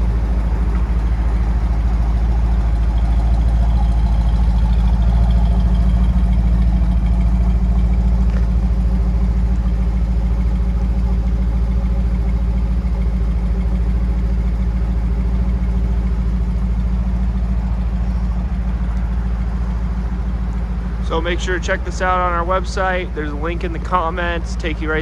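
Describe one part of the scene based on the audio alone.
A car engine idles with a steady, deep exhaust rumble.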